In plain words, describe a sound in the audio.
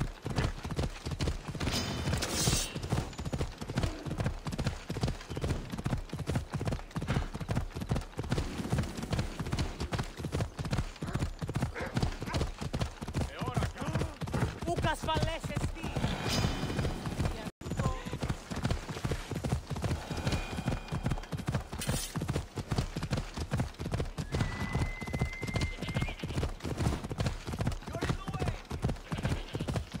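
Horse hooves gallop rapidly on a dirt path.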